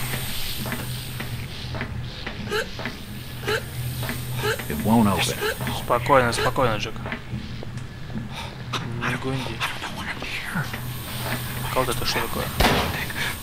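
Steam hisses steadily from a leaking pipe.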